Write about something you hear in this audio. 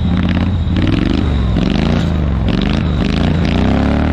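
Branches scrape and snap against the vehicle.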